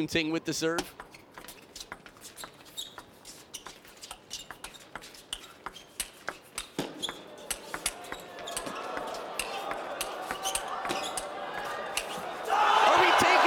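A table tennis ball clicks quickly back and forth off paddles and a table in a fast rally.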